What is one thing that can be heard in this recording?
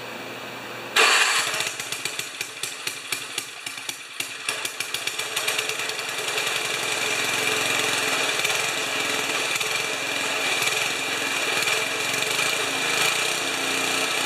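A small four-stroke snowblower engine sputters to life and runs.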